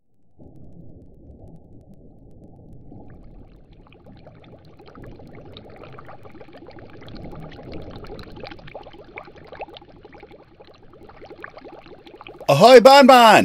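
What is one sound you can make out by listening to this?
A boat engine chugs low and steady.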